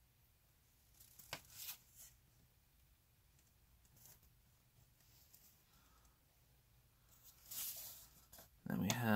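A large sheet of paper rustles softly as a hand moves it.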